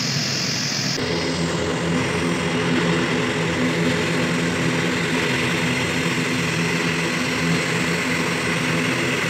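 A turboprop airliner taxis toward the listener, its propellers droning.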